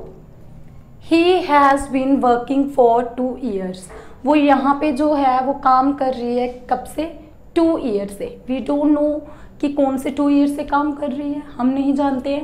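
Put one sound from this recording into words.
A young woman speaks clearly and with animation, close to a microphone.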